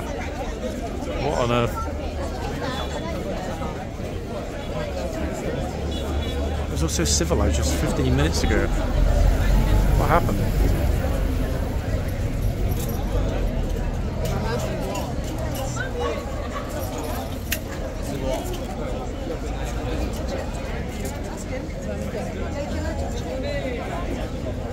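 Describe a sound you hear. A crowd of tourists chatters nearby, outdoors.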